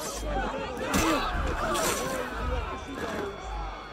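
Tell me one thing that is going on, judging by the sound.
Swords clash and ring sharply.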